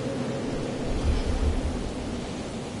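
Thunder rumbles and crackles with a lightning strike.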